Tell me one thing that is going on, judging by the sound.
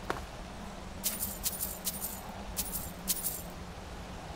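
Coins clink and jingle in quick bursts.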